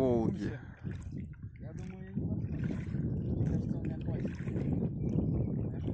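A paddle dips and splashes in water.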